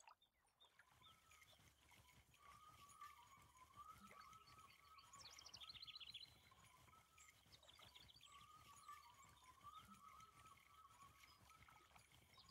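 A fishing reel whirs as it is wound in.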